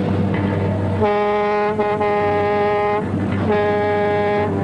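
A truck air horn blasts loudly in long bursts.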